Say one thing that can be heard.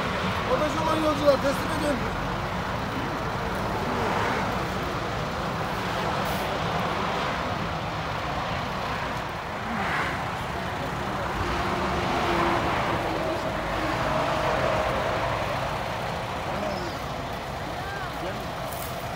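A bus engine idles steadily.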